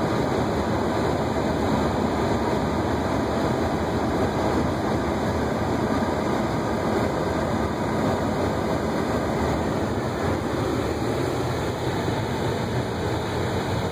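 A car engine hums as it drives slowly.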